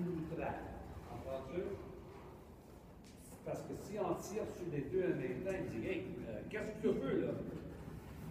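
A man talks calmly in a large echoing hall.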